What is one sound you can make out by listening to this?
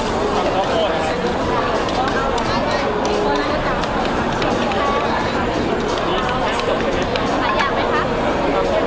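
A crowd chatters busily all around outdoors.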